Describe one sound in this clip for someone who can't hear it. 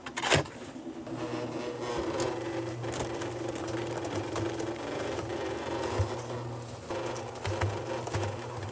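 Wet concrete pours and slops out of a turning mixer.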